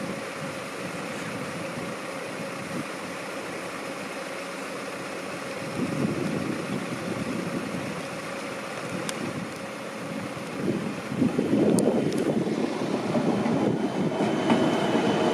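A train rumbles along the tracks, growing louder as it approaches and passes close by.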